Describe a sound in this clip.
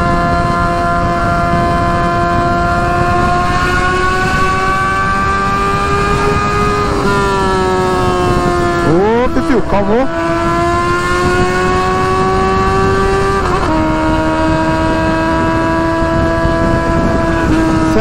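A motorcycle engine hums steadily, its pitch rising and falling as the rider shifts gears.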